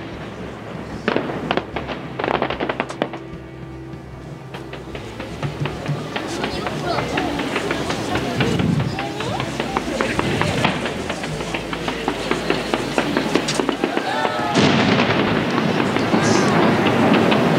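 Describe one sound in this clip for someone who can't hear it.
Fireworks crackle and sizzle.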